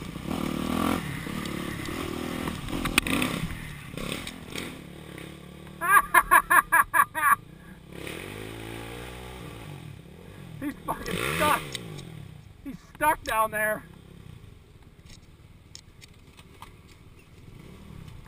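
A dirt bike engine idles and putters nearby.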